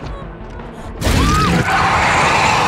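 A heavy blade strikes with a loud slash.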